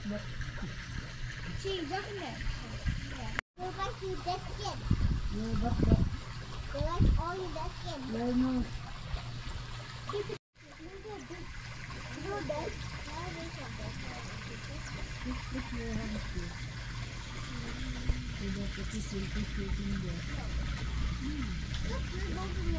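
Water splashes and churns as fish thrash at the surface close by.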